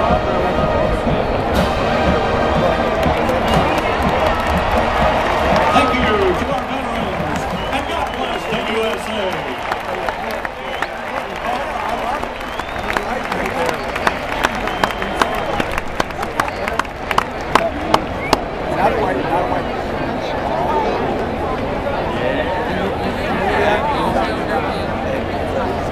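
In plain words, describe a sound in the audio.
A huge crowd cheers and roars throughout.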